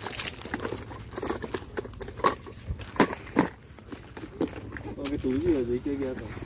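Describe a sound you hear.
Plastic clicks and knocks as a tackle box is handled.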